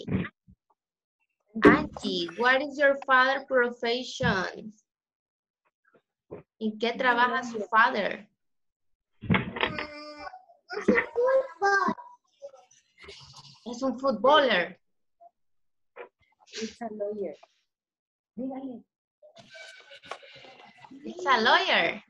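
Young children speak and call out through an online call.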